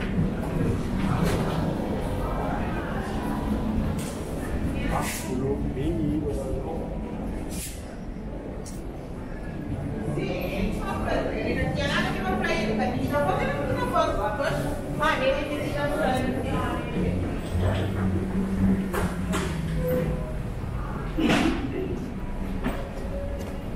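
Footsteps echo through a tiled underground passage.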